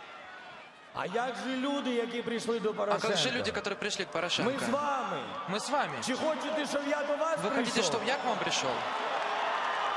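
A man speaks loudly and with animation into a microphone, echoing through a large stadium.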